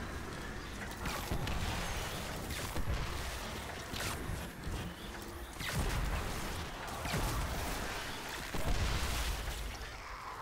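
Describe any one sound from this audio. Energy blasts burst and boom.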